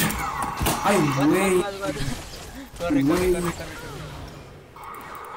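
Game spell effects whoosh and crash during a fight.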